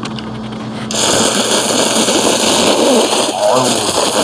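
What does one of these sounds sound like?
A young man slurps noodles noisily.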